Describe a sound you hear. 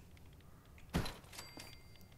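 A short game interface click sounds as an item is placed.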